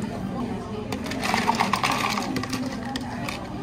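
Ice cubes clatter into a plastic cup.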